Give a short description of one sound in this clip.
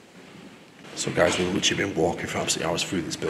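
A young man talks calmly close by, his voice echoing.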